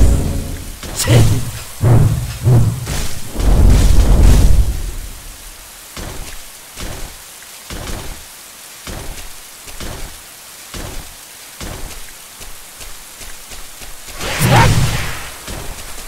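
Blades strike creatures with sharp hits.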